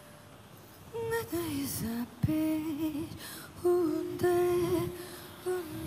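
A young woman's voice rings out through a microphone in a large hall.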